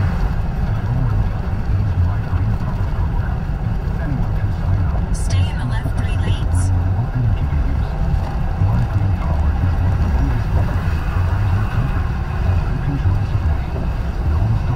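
A car's engine hums and its tyres roar steadily on a highway, heard from inside the car.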